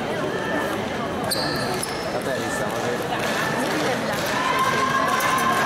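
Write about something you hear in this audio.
Fencing blades click and clash against each other.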